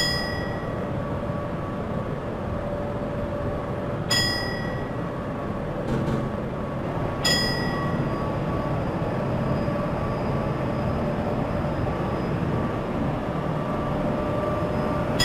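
An electric commuter train runs along the track with a steady inverter motor whine.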